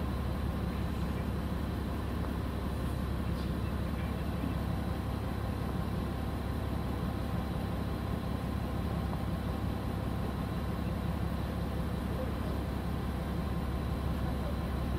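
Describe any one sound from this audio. A diesel railcar's engine idles in a low, steady rumble.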